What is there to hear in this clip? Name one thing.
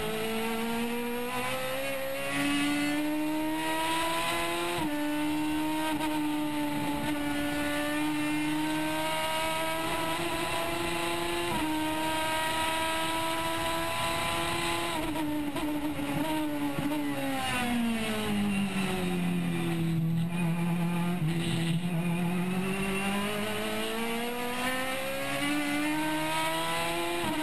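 A race car engine roars loudly from inside the cabin, rising through the gears and dropping under braking.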